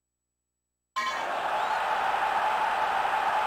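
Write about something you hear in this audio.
A stadium crowd in a video game cheers.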